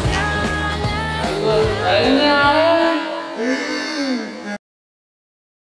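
Young men cheer and shout with joy close by.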